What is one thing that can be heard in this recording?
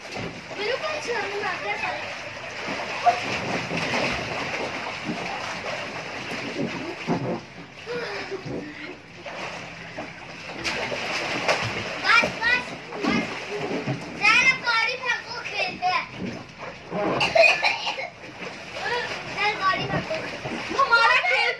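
Water splashes and sloshes in a small pool.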